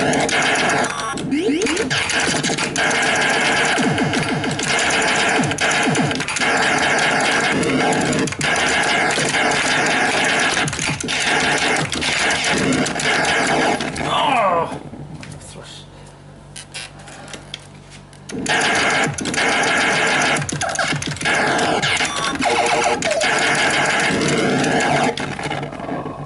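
An arcade game beeps and buzzes with laser shots and explosions.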